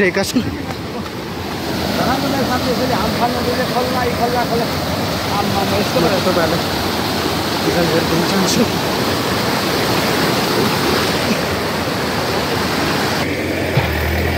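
Muddy floodwater rushes and roars loudly over rocks.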